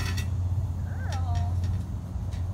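A young girl calls out briefly nearby.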